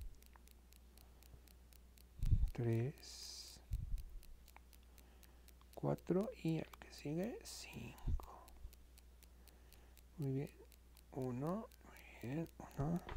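Yarn rustles softly against a crochet hook.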